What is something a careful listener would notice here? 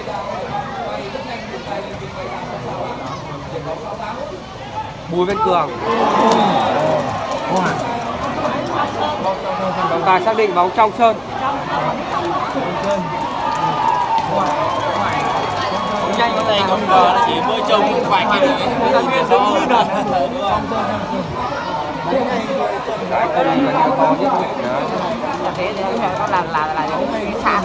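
A large outdoor crowd cheers and chatters loudly.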